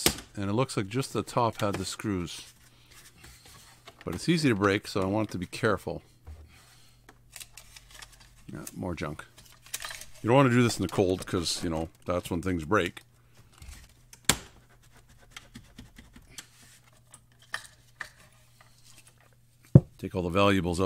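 Plastic dash trim clicks and snaps as it is pried loose.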